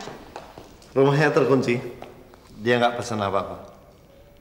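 A middle-aged man answers firmly.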